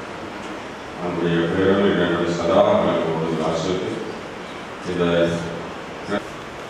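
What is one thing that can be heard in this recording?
A man prays aloud through a microphone.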